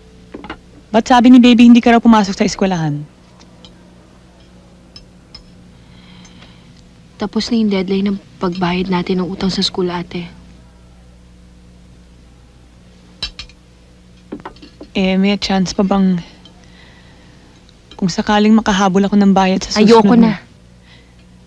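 A young woman speaks in short, calm phrases close by.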